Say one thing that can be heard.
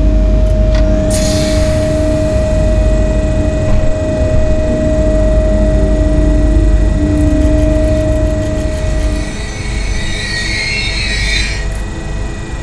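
A train rumbles along the tracks and slows to a stop.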